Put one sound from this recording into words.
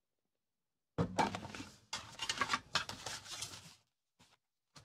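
A metal tin lid opens.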